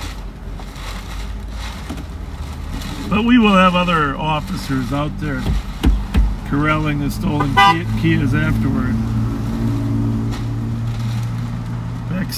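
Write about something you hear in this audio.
Cars drive past close by.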